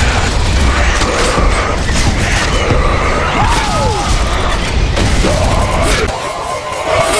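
Gunfire rattles and explosions boom loudly.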